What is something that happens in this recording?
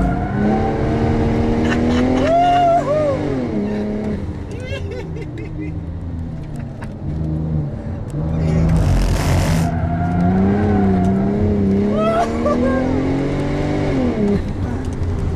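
A car engine roars loudly from inside the cabin, revving up and down through the gears.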